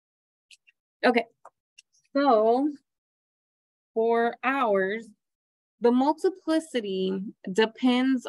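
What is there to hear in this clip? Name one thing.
A woman speaks calmly through a microphone, as if on an online call.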